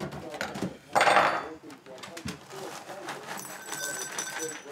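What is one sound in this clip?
Dry cereal rattles as it pours into a bowl.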